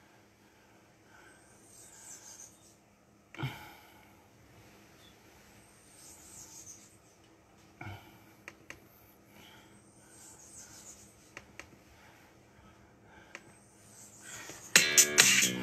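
A young man breathes heavily while exercising.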